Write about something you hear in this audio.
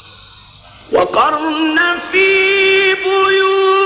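A man chants loudly into a microphone, holding long, wavering melodic tones.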